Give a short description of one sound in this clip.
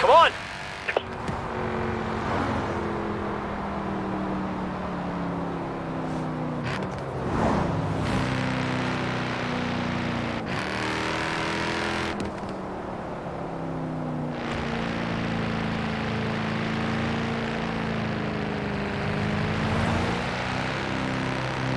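A sports car engine roars and revs.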